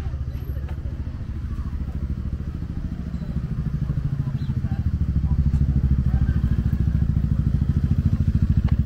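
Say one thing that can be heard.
A motor scooter's engine putters steadily nearby, growing louder.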